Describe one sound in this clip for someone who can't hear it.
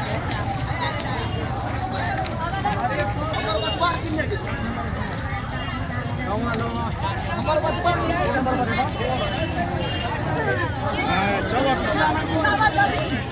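A large crowd of men and women talks and murmurs all around, outdoors.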